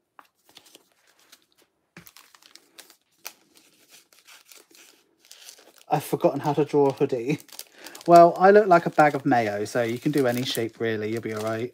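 A foil packet crinkles in someone's hands.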